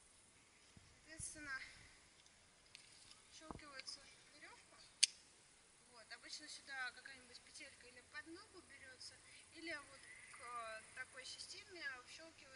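Young women talk and chatter nearby outdoors.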